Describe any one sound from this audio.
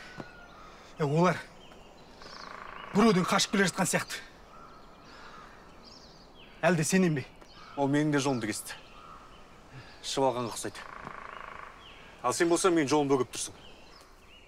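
A man speaks tensely close by.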